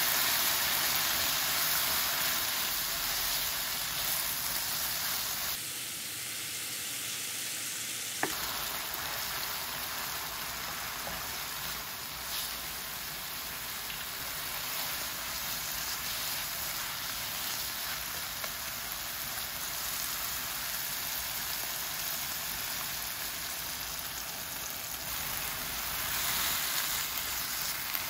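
Chopsticks scrape and stir food in a frying pan.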